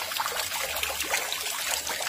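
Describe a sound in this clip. Water gushes from a pipe and splashes down.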